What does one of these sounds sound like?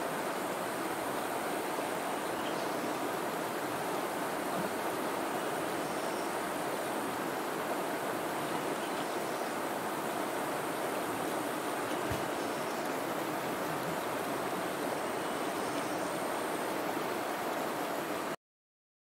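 A river rushes and splashes over rocks.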